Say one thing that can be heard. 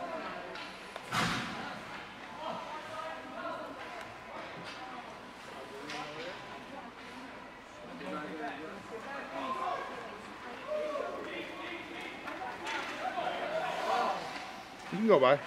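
Skates scrape and swish across ice.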